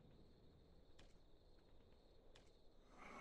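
Short soft clicks sound as buttons are pressed.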